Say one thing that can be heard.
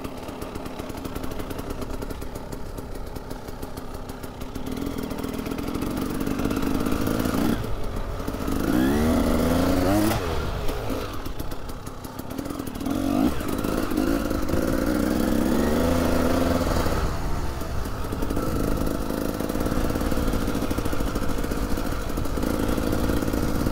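A dirt bike engine revs and drones up and down close by.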